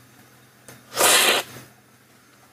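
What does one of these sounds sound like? A man slurps tea loudly from a spoon.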